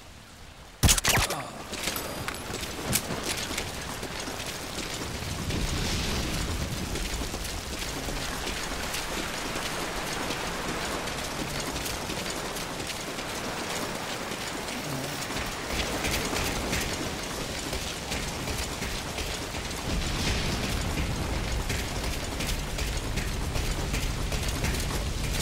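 Rain falls steadily.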